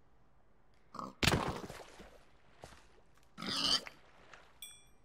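Water splashes as something plunges into it.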